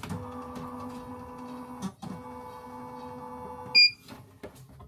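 A small motor inside a machine whirs steadily, then stops.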